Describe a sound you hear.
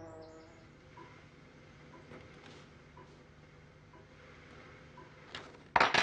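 A watch mechanism ticks softly.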